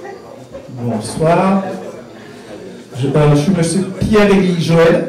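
An elderly man speaks into a microphone in a lively voice.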